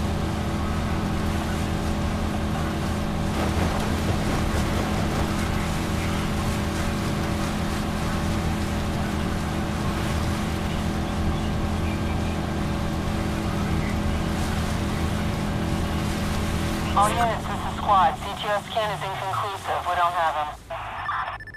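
A motorboat engine drones steadily, then slows and fades away.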